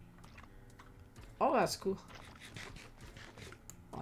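Crunchy munching of food comes in quick bites.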